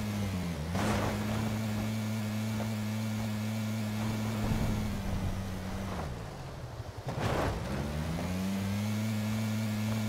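A small buggy engine drones steadily, dipping and rising again in pitch.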